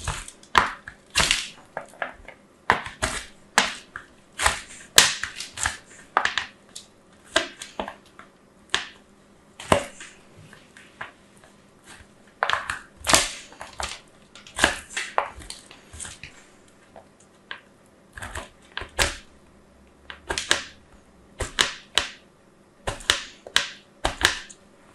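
Soap scrapes in short rasping strokes across a metal grater, close by.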